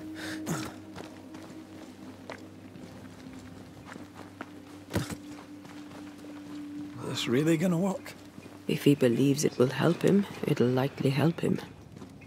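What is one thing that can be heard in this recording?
Footsteps run over grass and stones.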